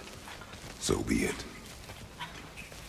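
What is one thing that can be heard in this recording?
A man speaks in a deep, low voice.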